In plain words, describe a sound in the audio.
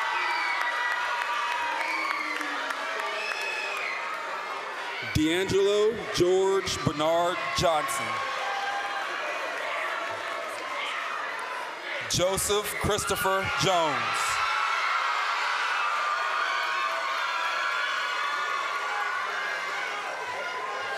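A crowd cheers and chatters in a large hall.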